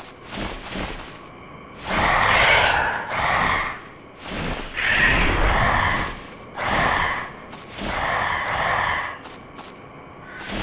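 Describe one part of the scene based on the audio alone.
Footsteps fall on dirt.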